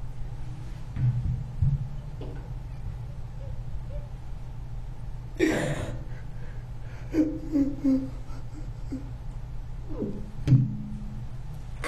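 An elderly man speaks haltingly into a microphone, his voice breaking with emotion.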